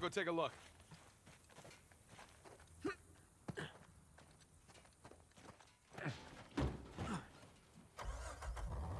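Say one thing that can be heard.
Footsteps run across dirt.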